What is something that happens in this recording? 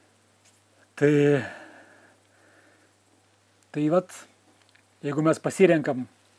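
A man speaks calmly and expressively, close to a microphone, with pauses.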